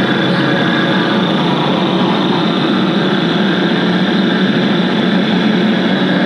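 A loud electric guitar plays distorted, noisy music through an amplifier.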